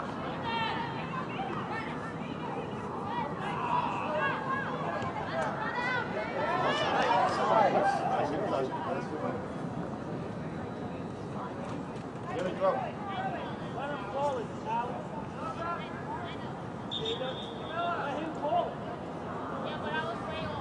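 Spectators cheer and shout outdoors.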